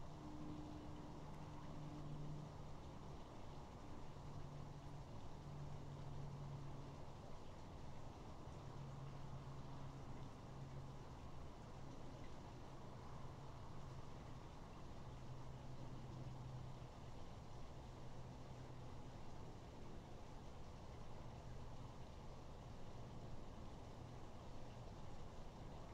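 An owl shuffles in nest material.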